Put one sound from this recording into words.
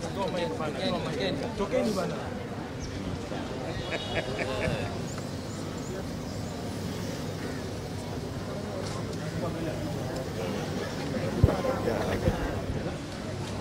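A crowd of men and women chatters close by outdoors.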